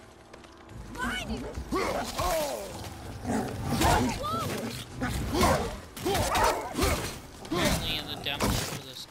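Wolves snarl and growl.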